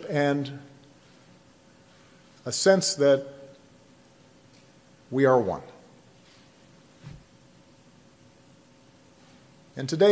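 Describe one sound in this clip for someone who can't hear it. A man speaks slowly and emphatically into a microphone, with pauses between phrases, in a room with some echo.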